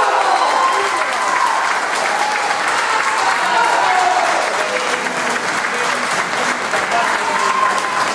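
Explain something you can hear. A crowd cheers and calls out.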